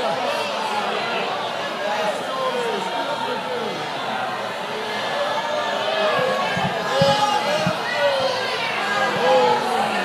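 A woman speaks with animation through a microphone and loudspeakers in a large echoing hall.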